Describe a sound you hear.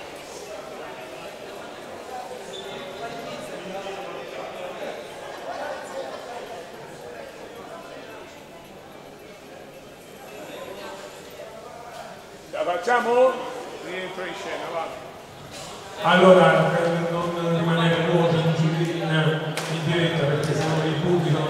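A crowd murmurs and chatters in a large hall.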